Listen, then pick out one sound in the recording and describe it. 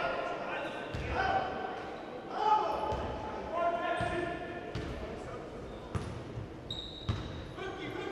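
A basketball thumps against the floor.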